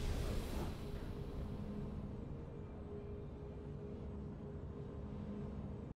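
Triumphant game music plays.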